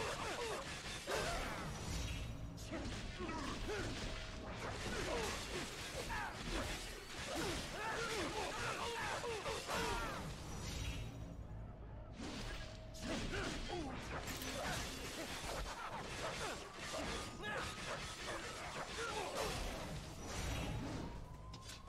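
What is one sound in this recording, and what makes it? Swords clash and slash rapidly in a video game fight.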